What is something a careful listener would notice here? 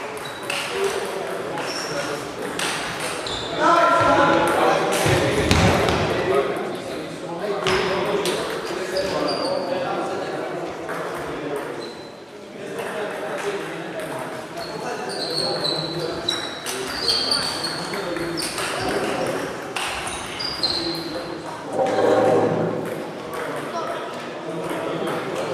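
Sports shoes squeak on a hard floor.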